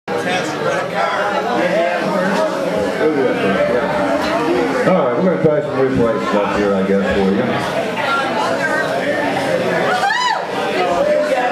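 An electric guitar plays loudly up close.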